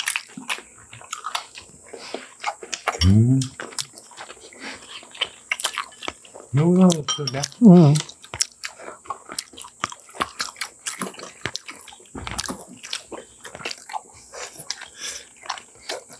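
People chew and slurp food close to the microphone.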